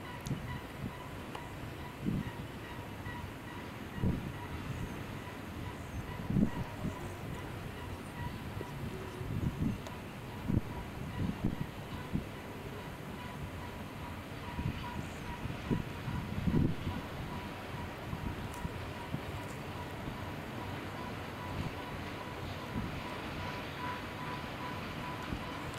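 Steel wheels clatter on the rails.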